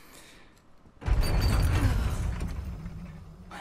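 A van engine rumbles to life.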